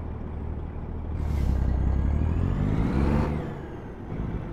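A truck engine revs up and its pitch rises, then drops away.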